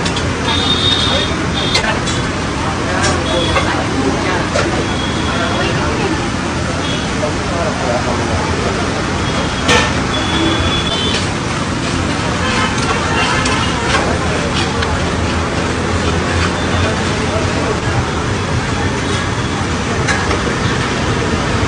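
Water hisses and sizzles loudly on a hot griddle.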